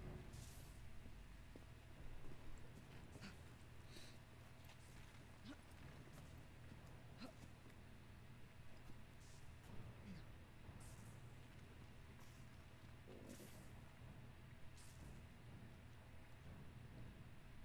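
Footsteps crunch on rubble.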